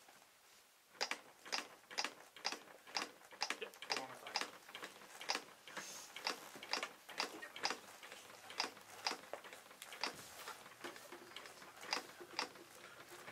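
Rhythmic thumps and clicks of chest compressions on a training manikin repeat quickly and steadily.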